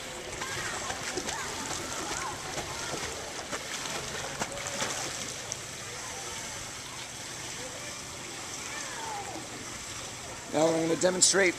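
Water splashes as a swimmer kicks.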